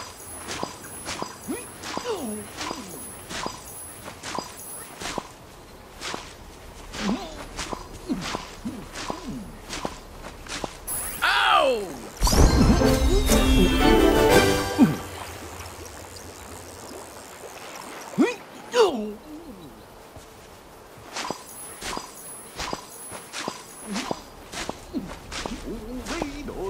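Soft plucking pops ring out as crops are pulled from the soil, again and again.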